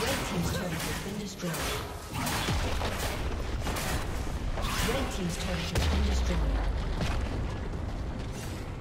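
Game combat effects clash and burst with spell sounds.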